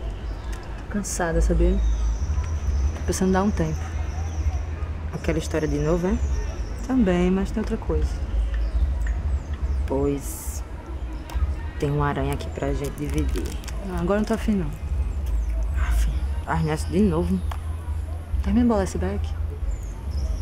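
A second young woman answers in a low, calm voice.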